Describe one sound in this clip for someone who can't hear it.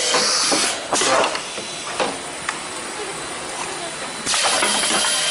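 Pneumatic cylinders hiss and knock on a capsule filling machine.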